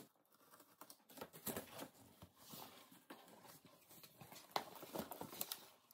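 Cardboard flaps rustle as a box is opened.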